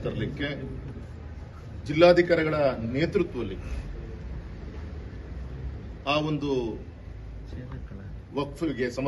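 A man speaks calmly into microphones close by.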